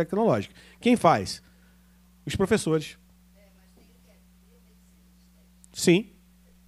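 A man speaks into a microphone over loudspeakers in an echoing room, pausing between phrases.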